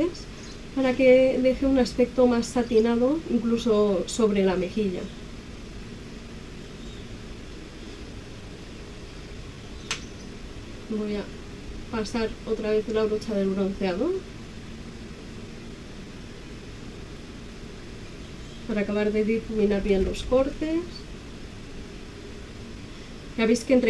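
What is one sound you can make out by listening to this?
A woman talks with animation, close up.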